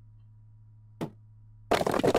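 A sledgehammer thuds against a brick wall.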